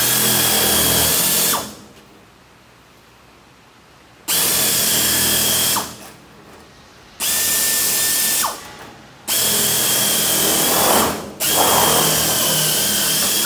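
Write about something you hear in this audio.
A plasma cutter hisses loudly in bursts as it cuts sheet metal.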